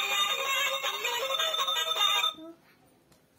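A toy telephone plays a bright electronic tune.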